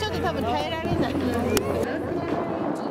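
A young woman sings into a microphone outdoors.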